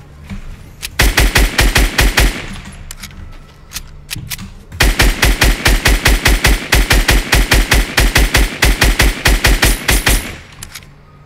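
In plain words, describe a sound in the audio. Gunshots fire in rapid, loud bursts.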